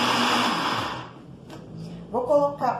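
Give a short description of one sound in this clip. A blender lid clatters as it is lifted off.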